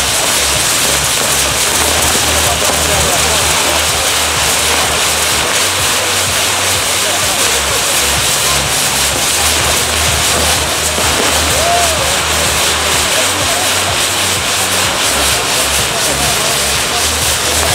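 Fireworks boom with deep, rapid thuds.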